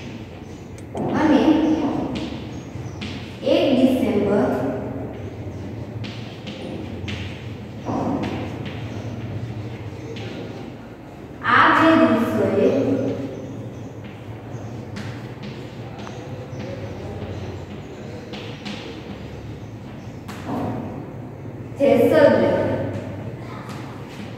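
A woman speaks loudly in short bursts, as if dictating.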